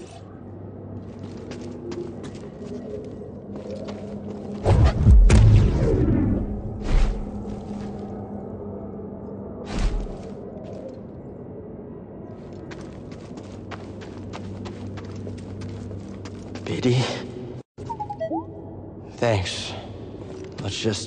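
Footsteps run across a hard stone floor.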